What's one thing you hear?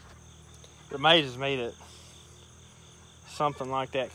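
A man speaks close by, casually.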